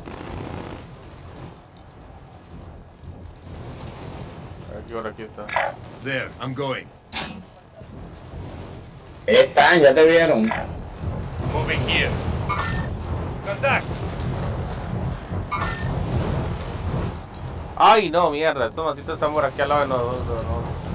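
Wind rushes steadily past during a fast parachute descent.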